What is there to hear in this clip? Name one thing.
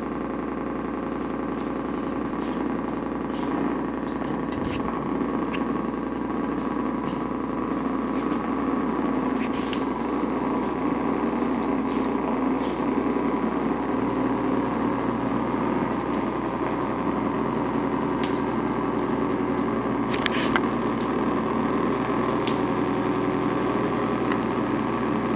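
Electronic music from a modular synthesizer drones and hums steadily through loudspeakers.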